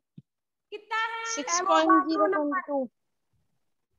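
A young woman speaks clearly, as if teaching, close by.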